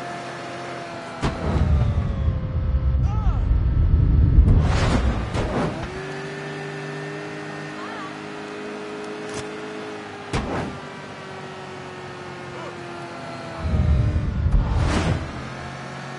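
A car engine hums steadily, revving up as the car speeds up.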